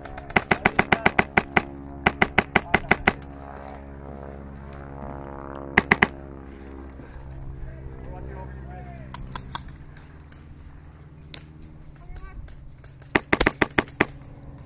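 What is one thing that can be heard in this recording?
An airsoft gun fires in rapid bursts of sharp shots.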